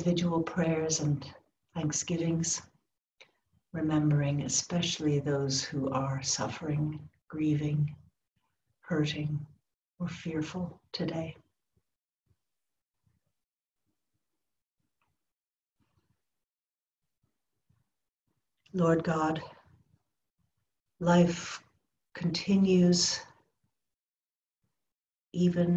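An older woman speaks warmly and calmly over an online call, with pauses.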